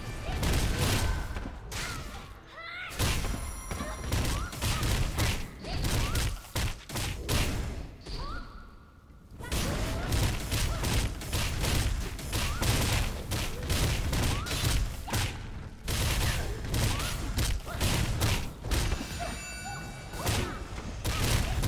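Swords clash and magic blasts burst in quick, rapid combat.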